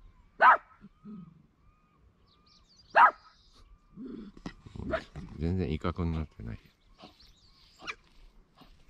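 A deer barks sharply a few times.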